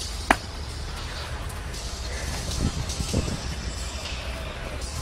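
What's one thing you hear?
Sneakers scuff and tap on pavement.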